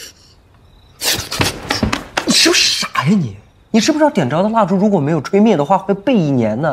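A young man speaks scoldingly, up close.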